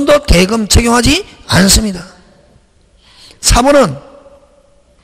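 A man speaks into a microphone with animation, heard through a loudspeaker in an echoing room.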